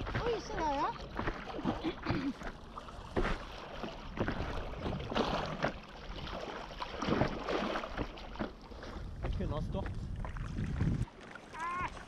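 Water splashes and laps against a board.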